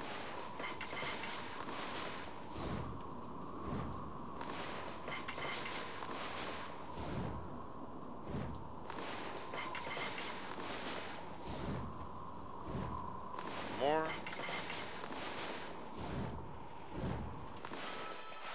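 A game plays soft chimes and whooshes as a menu opens and closes again and again.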